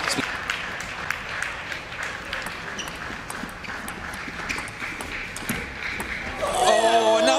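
A table tennis ball clicks back and forth in a fast rally.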